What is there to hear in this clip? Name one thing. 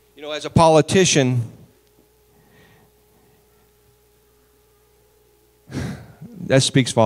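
A man speaks with animation through a microphone and loudspeakers, pausing between phrases.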